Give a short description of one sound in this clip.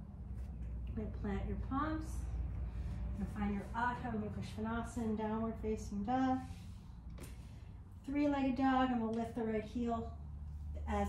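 A woman speaks calmly and slowly, close by.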